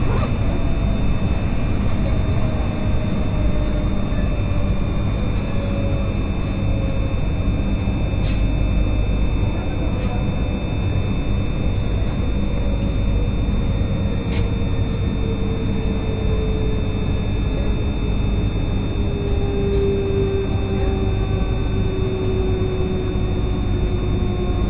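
A vehicle rumbles steadily as it travels at speed.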